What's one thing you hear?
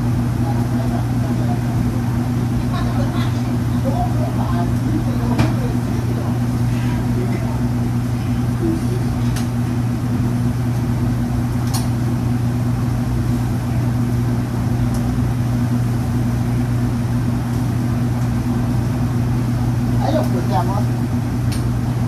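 An exhaust fan hums steadily.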